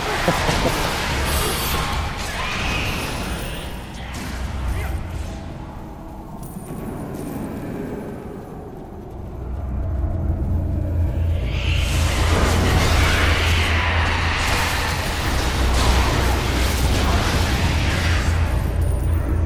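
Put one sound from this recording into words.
Game spells and weapons crash and whoosh in battle.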